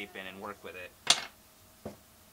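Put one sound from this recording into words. A cardboard tube knocks down onto a wooden surface.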